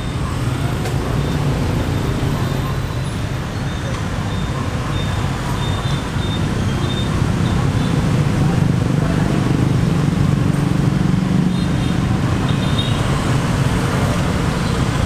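Motorbike engines hum and rumble steadily as traffic passes close by.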